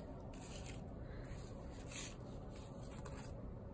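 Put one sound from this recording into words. A piece of card slides softly across a wooden table.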